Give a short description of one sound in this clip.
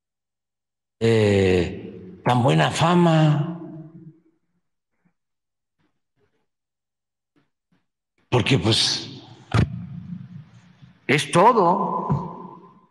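An elderly man speaks slowly and calmly into a microphone in a large echoing hall, with long pauses.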